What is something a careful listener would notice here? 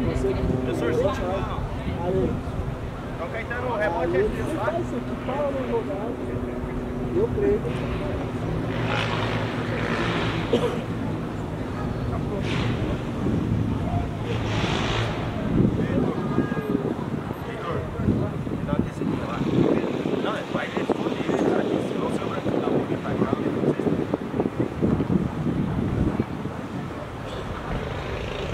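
Men and women in a small crowd chatter and call out from a distance, outdoors.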